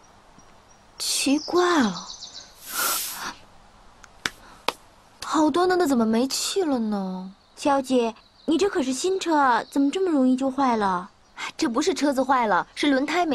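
A young woman speaks in a puzzled tone, close by.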